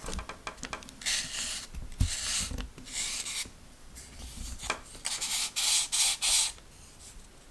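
A sanding block rasps against a thin strip of wood.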